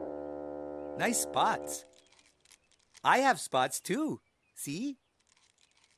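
A childlike cartoon voice speaks in a cheerful sing-song, close to the microphone.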